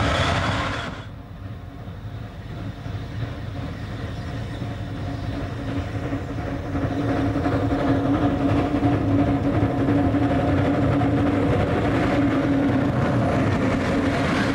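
A steam locomotive chuffs steadily as it approaches and passes close by.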